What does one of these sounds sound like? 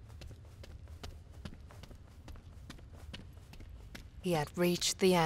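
Footsteps patter quickly across a stone floor.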